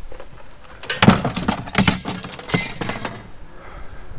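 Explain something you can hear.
Metal objects clatter and rattle as they are dropped into a van.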